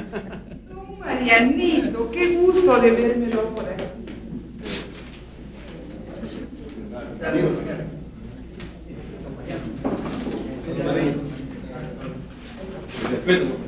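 A crowd of men and women chatter in the background.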